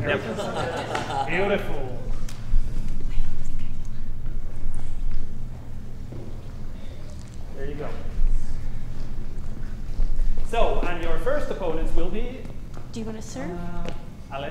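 A man speaks in a hall.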